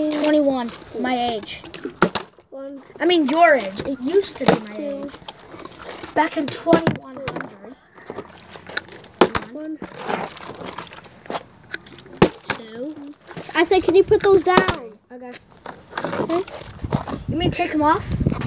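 A plastic bottle crinkles in a hand.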